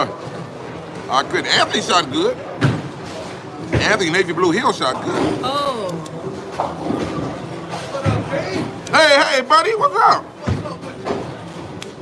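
A bowling ball rolls down a lane and crashes into pins.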